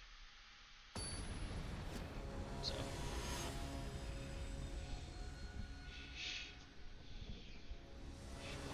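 Game music plays with a swelling orchestral tone.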